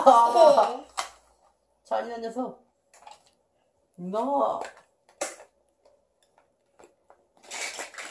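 Plastic toys click and clatter as a child handles them.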